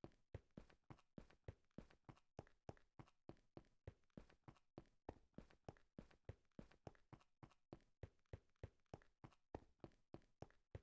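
Quick footsteps tread steadily on stone, faint.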